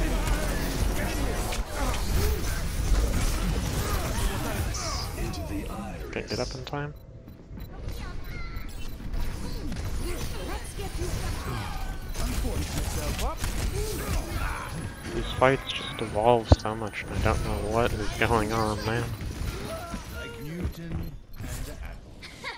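Game explosions and effects boom and crackle.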